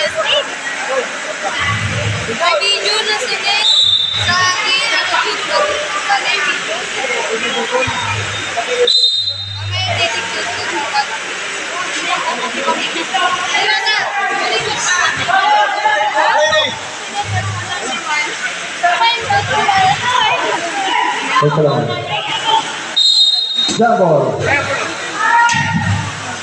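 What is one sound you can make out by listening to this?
A crowd of spectators shouts and cheers loudly.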